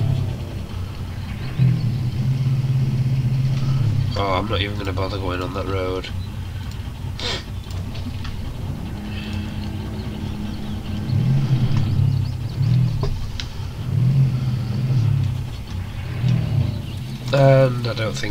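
A truck engine growls and revs at low speed.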